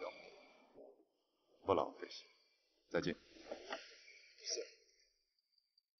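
A man speaks softly and calmly nearby.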